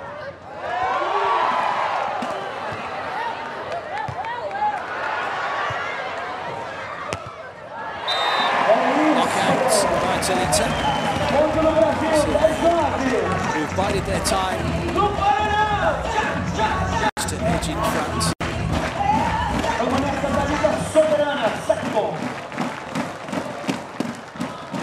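A volleyball is struck with a dull slap.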